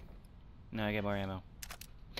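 A metal case clicks open.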